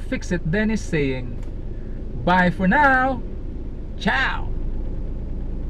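A man speaks cheerfully and close by inside a car.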